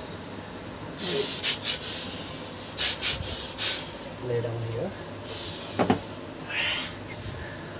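Hands slap and pat sharply on a man's head and back.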